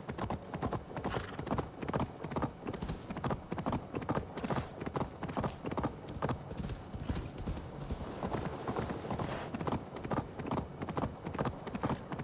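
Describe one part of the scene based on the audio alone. Horse hooves thud and crunch steadily through snow.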